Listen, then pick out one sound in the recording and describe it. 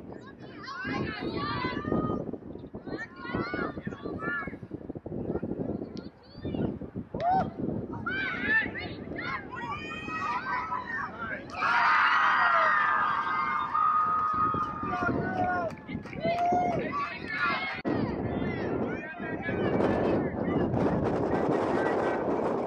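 Young women players call out to each other across the field.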